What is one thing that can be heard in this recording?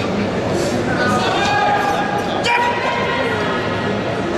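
Men shout encouragement loudly.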